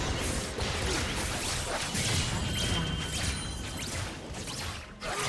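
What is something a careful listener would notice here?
Fantasy battle sound effects crackle and clash as spells and blows land.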